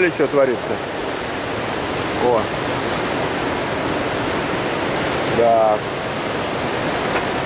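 Ocean waves roll steadily onto a beach.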